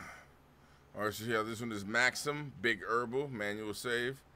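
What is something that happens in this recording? A man talks casually through a microphone.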